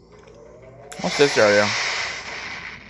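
A spaceship's warp drive starts with a sudden electronic whoosh.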